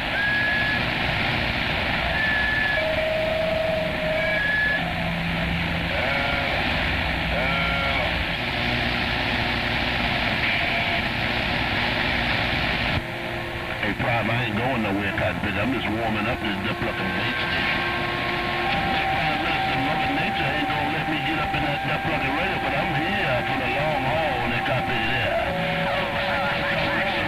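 A radio receiver hisses and crackles with static.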